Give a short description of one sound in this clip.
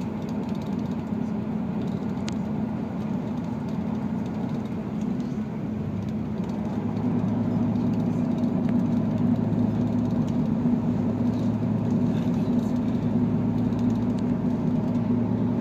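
A diesel railcar drones steadily, heard from inside, and grows louder partway through.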